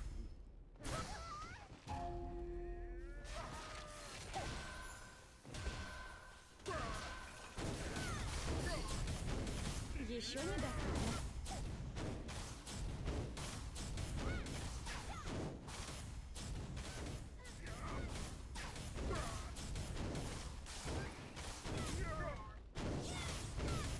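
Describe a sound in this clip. Blows strike with sharp impacts.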